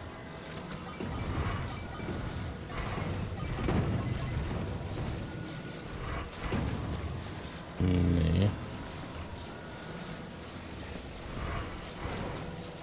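Soft whooshes swell up now and then.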